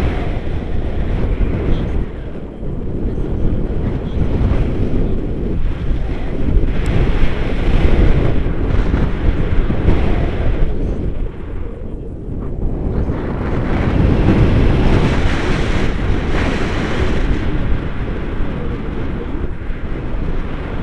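Strong wind buffets and roars against a microphone.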